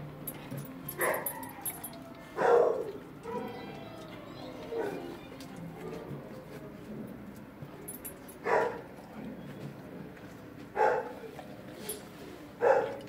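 A dog barks loudly nearby.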